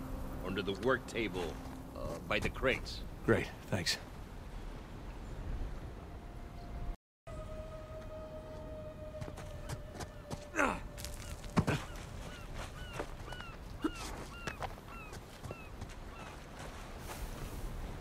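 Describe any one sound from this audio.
Footsteps scuff and tap on stone steps.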